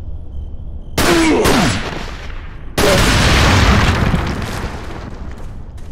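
A gun fires in loud bursts that echo and fade.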